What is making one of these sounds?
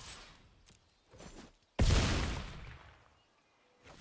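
Game sound effects whoosh as cards move.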